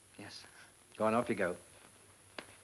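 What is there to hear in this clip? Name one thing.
A young man answers briefly.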